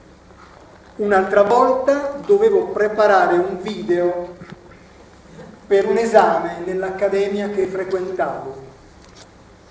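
A middle-aged man speaks expressively, his voice carrying in a large hall.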